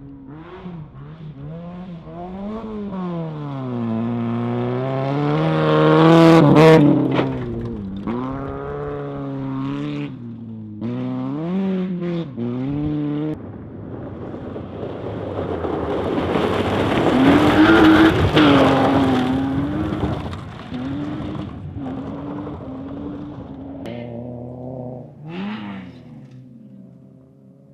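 A rally car engine revs hard, rising and falling as it shifts gears.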